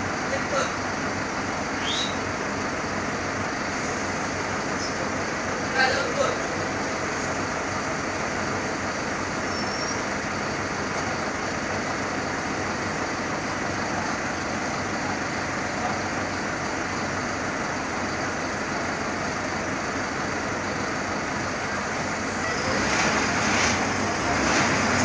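Loose fittings inside a bus rattle and clatter.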